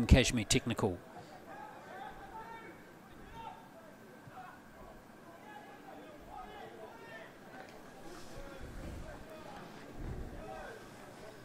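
Young men shout and call to each other from a distance outdoors.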